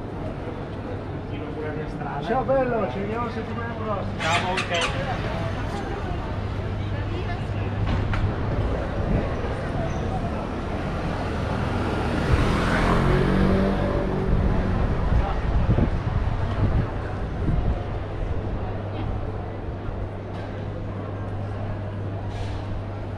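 A crowd of people chatters outdoors in a busy street.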